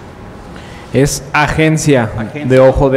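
A man speaks clearly and loudly through a microphone.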